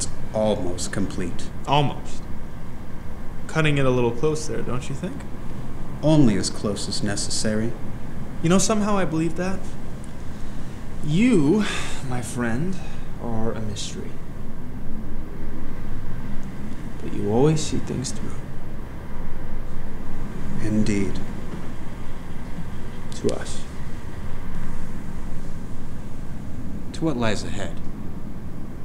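A young man speaks quietly and hesitantly, close by.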